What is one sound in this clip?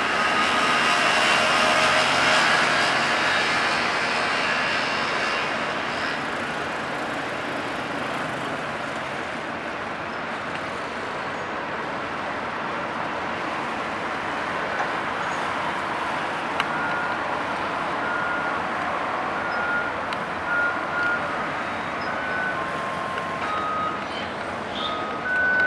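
Cars and motorbikes drive past on a nearby road.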